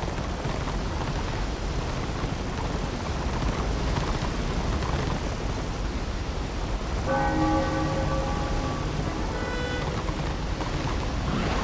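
Water splashes as a horse wades through it.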